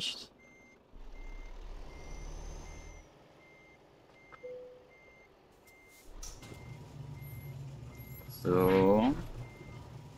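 A heavy truck engine idles and rumbles at low speed.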